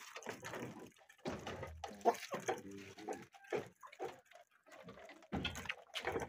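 Chickens cluck close by.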